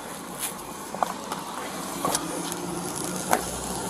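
Fabric and plastic rustle and knock as things are handled close by.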